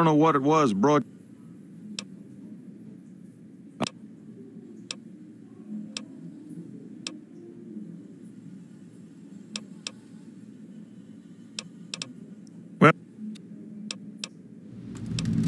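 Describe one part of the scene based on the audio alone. A middle-aged man speaks calmly in a low voice.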